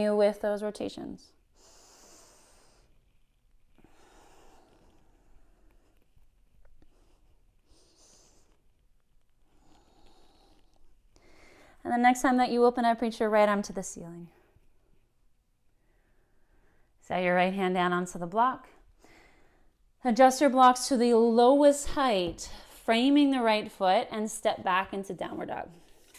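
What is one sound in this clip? A woman speaks calmly close to a microphone, giving instructions in bursts.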